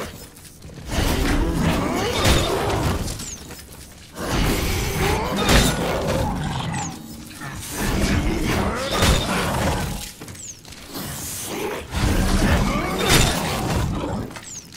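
A gun fires in sharp blasts.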